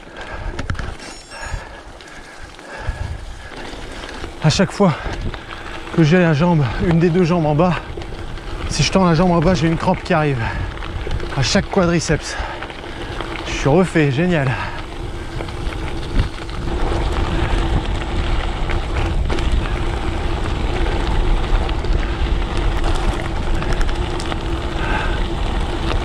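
Bicycle tyres crunch and roll over loose gravel.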